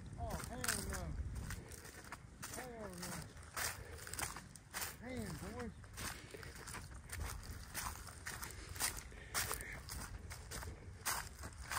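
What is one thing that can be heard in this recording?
Footsteps crunch through dry corn stubble.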